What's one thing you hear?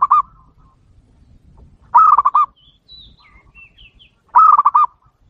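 A dove calls close by in short bursts of rapid, rolling coos.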